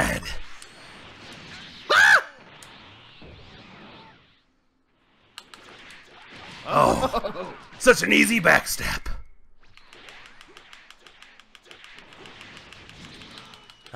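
Energy blasts whoosh and explode.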